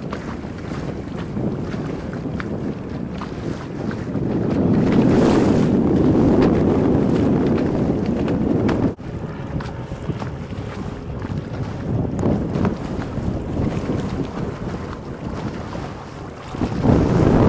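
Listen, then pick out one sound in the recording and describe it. Wind blows and buffets loudly outdoors on open water.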